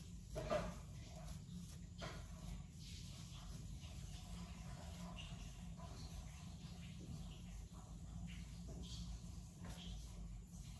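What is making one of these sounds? A comb swishes through wet hair.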